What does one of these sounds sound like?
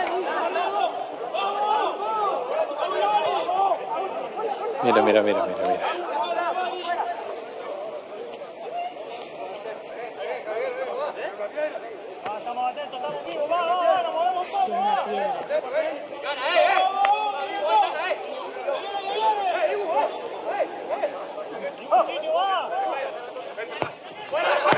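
Men shout and call out to each other in the open air.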